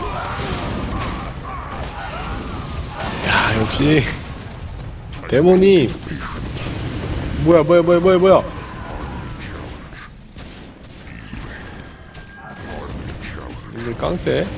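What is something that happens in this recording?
Fiery spell blasts burst and crackle in rapid succession.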